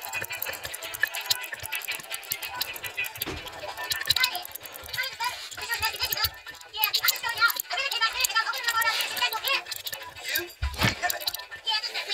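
Small metal tweezers click against a tiny watch mechanism.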